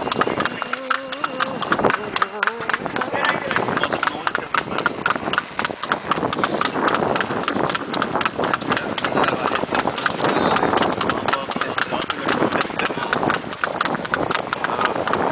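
A wooden cart rattles and creaks as it rolls along.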